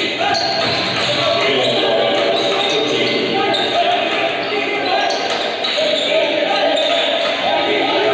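A basketball bounces on a hard floor as a player dribbles.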